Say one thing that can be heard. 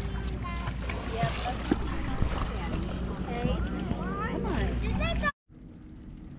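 A woman talks to a small child close by.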